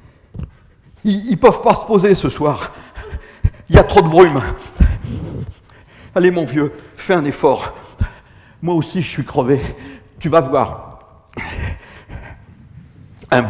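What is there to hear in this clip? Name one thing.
An elderly man talks with animation, close by in an echoing hall.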